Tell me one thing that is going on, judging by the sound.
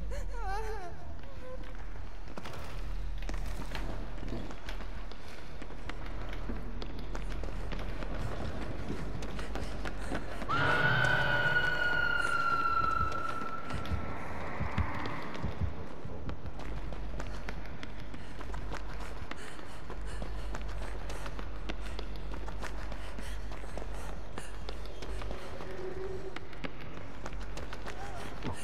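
Quick footsteps run over a hard floor.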